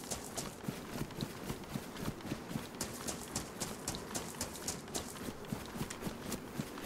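Running footsteps crunch quickly through dry grass.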